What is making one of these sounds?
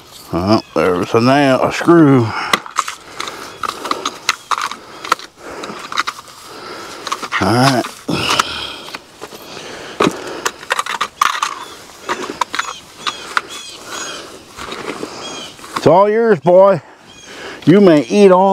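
A hand tool scrapes and knocks against dry ground.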